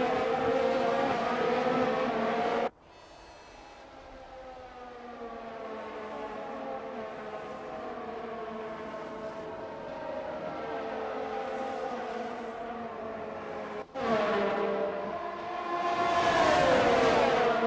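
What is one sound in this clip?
Racing car engines scream at high revs and whine as they shift gears.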